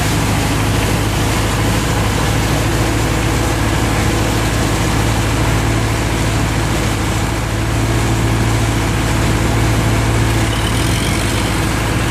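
A boat engine drones steadily up close.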